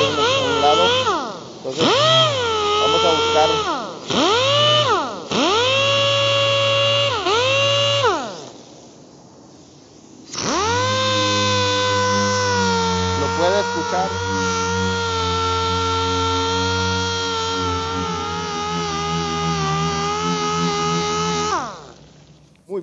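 An air-powered sander whines at a high pitch, repeatedly spinning up and winding down.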